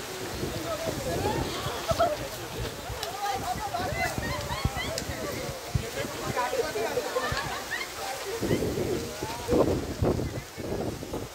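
Young men talk and shout excitedly nearby.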